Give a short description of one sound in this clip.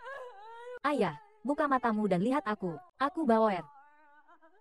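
A young woman sobs and wails loudly nearby.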